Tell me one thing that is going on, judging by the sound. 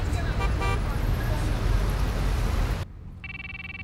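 Traffic and a crowd murmur on a busy street.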